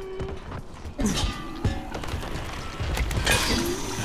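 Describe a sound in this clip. A gas canister thuds onto the ground.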